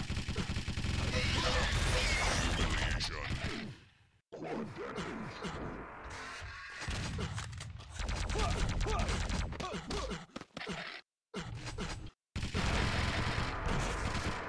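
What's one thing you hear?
Video game weapons fire in rapid bursts.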